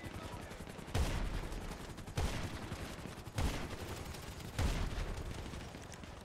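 Heavy rifle shots boom one after another, each with a rolling echo.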